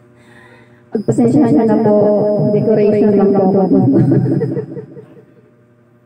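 A young woman sings loudly into a microphone.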